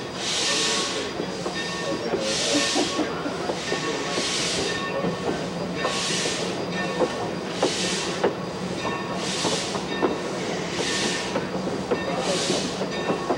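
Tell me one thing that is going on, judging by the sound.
Train wheels clack and rumble over the rail joints.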